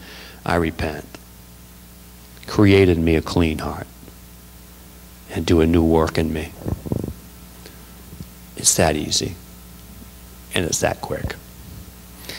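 A middle-aged man speaks calmly into a microphone, heard through a loudspeaker in a hall.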